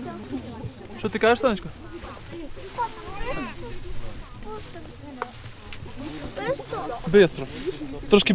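A young child talks in a high voice close by.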